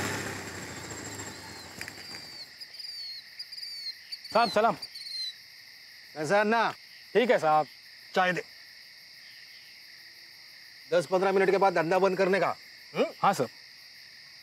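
Crickets chirp steadily outdoors at night.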